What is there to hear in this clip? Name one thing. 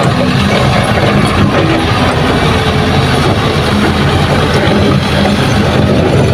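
A dump truck's diesel engine rumbles loudly as the truck drives slowly past.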